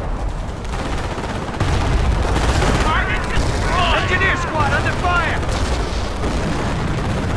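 Rifles and machine guns fire in rapid bursts.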